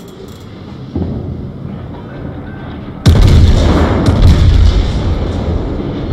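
Shells explode with loud rumbling blasts.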